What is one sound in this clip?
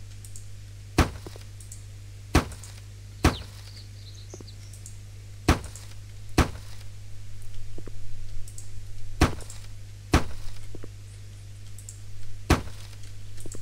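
A hammer strikes sheet metal roofing in sharp, ringing blows.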